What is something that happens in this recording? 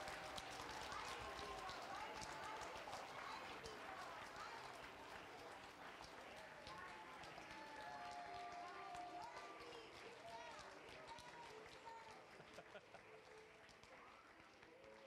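A group of children sings together in a large room.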